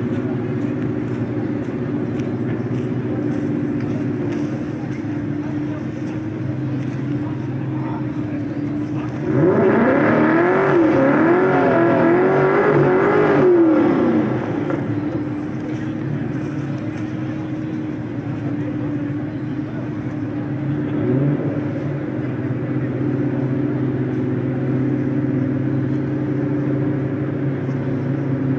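A tractor engine idles nearby with a steady low rumble.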